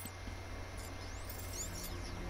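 A grappling line shoots out with a whirring zip.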